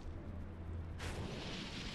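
A large bird's wings flap and whoosh through the air.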